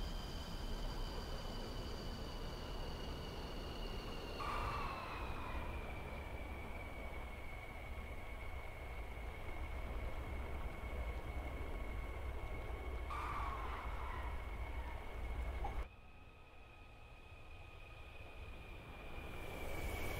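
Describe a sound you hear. A jet engine roars and whines steadily at high power.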